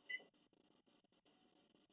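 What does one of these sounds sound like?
A treadmill beeps as its buttons are pressed.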